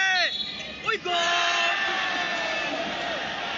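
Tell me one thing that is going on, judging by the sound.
A referee's whistle blows.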